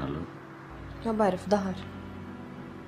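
A young woman speaks quietly nearby.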